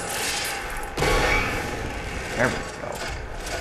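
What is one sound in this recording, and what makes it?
Gunfire bursts from a weapon.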